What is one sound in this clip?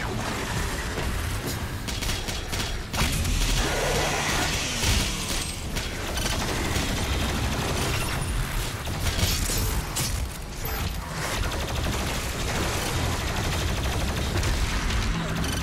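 Flesh splatters and tears wetly.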